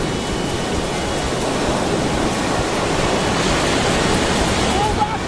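Waves wash onto the shore nearby.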